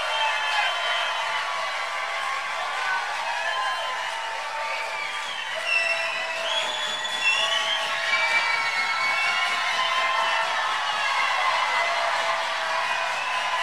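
People in a large crowd whistle shrilly.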